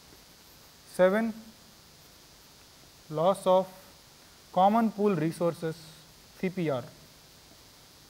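A man speaks in short, calm phrases, as if teaching.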